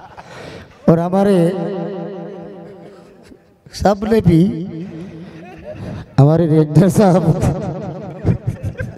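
A group of men chant slogans loudly in bursts.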